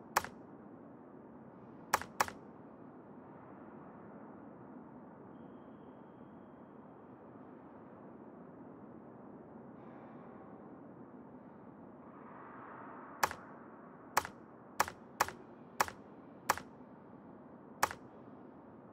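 Short electronic clicks sound as menu options are switched.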